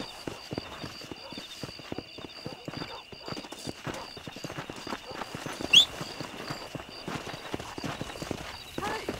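Crickets chirp steadily outdoors at night.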